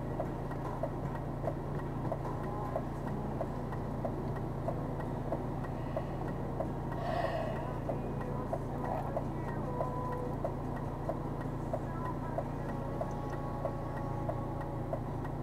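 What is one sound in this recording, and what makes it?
A van's engine idles close by with a steady low hum.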